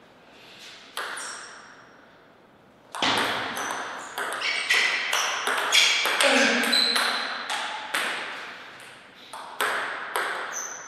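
A table tennis ball clicks sharply back and forth between paddles and the table, echoing in a large hall.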